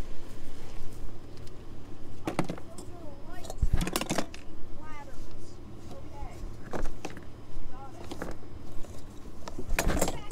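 Plastic objects clunk and rattle as a hand moves them about.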